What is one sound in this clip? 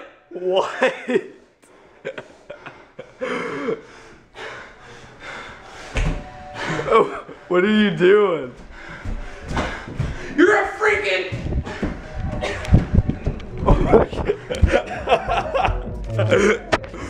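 A teenage boy laughs loudly close by.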